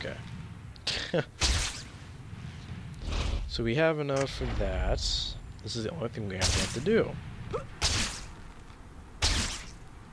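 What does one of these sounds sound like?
Quick whooshes of air sweep past again and again as a figure swings between buildings.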